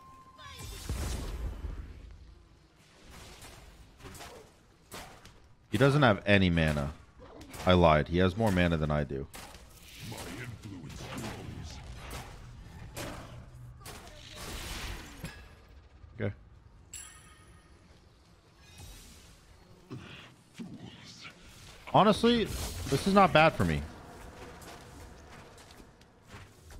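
Weapons clash and magic effects whoosh in a fight.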